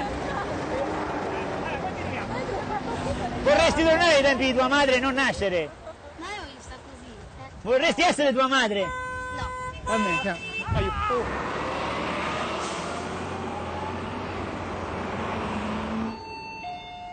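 Traffic hums and rumbles along a busy street.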